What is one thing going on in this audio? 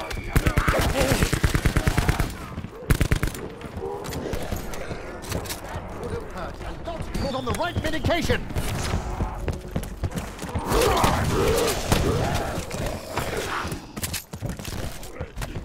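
Zombies growl and groan.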